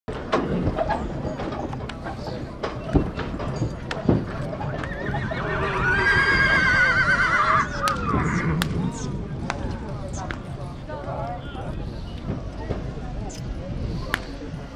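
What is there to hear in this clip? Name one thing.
Men talk nearby outdoors among a murmuring crowd.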